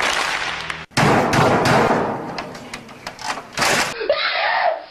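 A man smashes a computer monitor with a keyboard.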